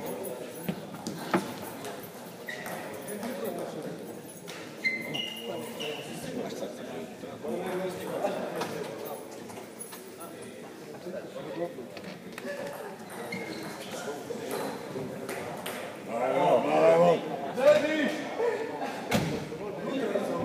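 Men talk and call out in a large echoing hall.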